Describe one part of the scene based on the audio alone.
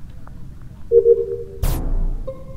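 A game chimes as a download finishes.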